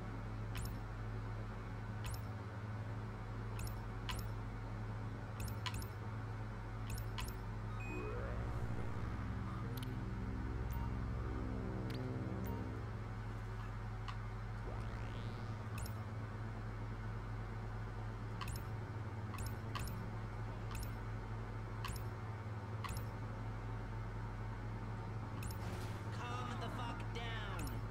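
Short electronic clicks sound again and again.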